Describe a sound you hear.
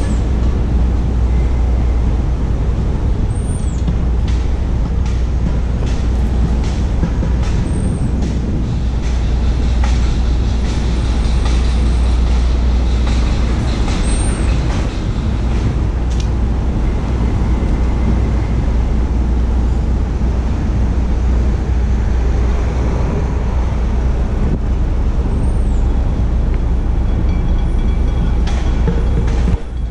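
City traffic hums and rumbles steadily outdoors.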